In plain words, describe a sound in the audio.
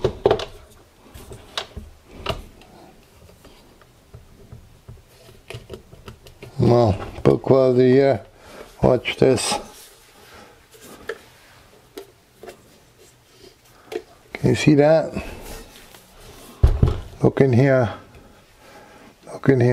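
Plastic parts click and knock as a controller is handled.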